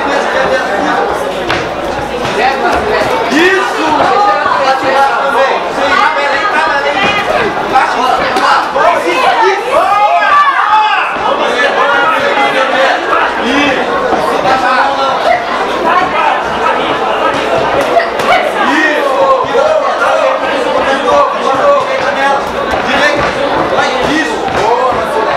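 A crowd shouts and cheers loudly.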